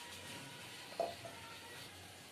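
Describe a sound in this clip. A small pot clinks against a metal plate.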